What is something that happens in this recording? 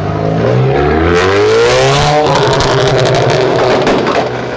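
A crowd cheers and shouts nearby.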